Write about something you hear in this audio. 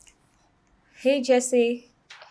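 A young woman speaks into a phone close by.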